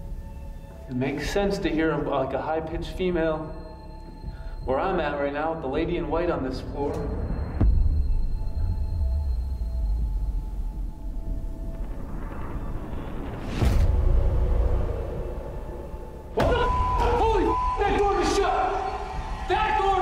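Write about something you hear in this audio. A man speaks close into a microphone.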